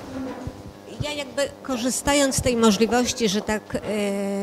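A woman reads out calmly through a microphone in an echoing hall.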